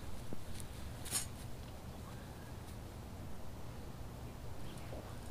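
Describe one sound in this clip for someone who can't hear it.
A cloth sheet rustles.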